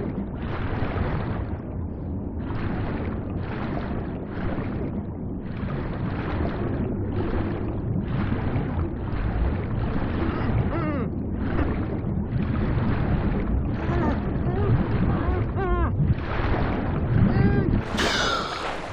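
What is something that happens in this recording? Muffled water rushes and gurgles in steady surges underwater.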